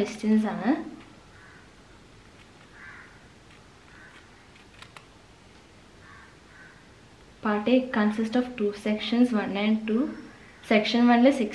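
A sheet of paper rustles as it is lifted and turned.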